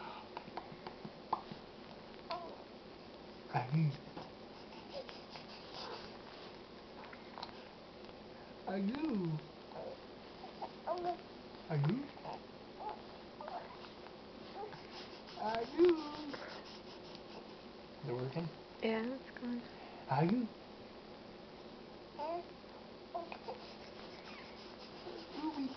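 A man talks softly and playfully to a baby close by.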